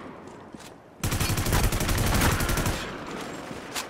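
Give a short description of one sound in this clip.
An assault rifle fires rapid bursts.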